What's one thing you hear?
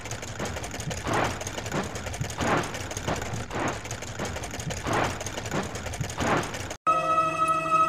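Spinning brushes scrub against metal with a rhythmic whoosh.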